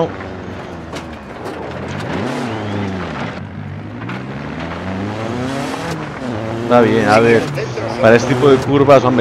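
A rally car engine revs and roars, rising and falling as gears change.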